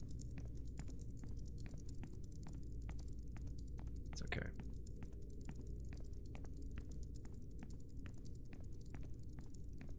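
Quick footsteps tap steadily on a hard floor.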